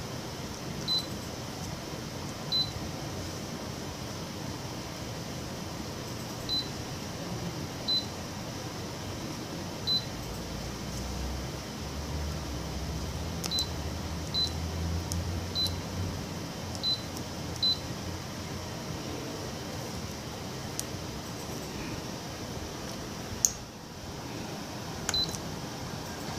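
A touchscreen beeps short and high each time it is tapped.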